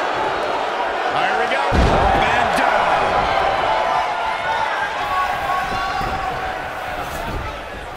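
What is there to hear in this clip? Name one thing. A crowd cheers and roars throughout.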